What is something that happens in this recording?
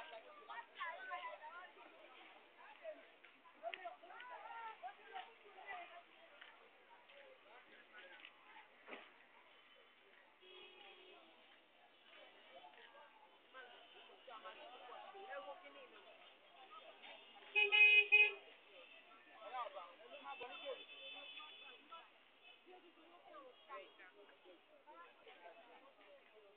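A crowd of men and women talk and call out nearby, outdoors.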